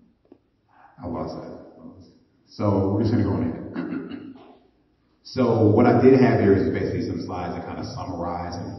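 A man speaks in a large room, heard from across the room.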